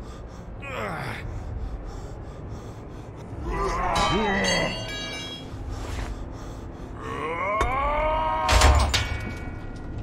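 A young woman talks and exclaims with animation close to a microphone.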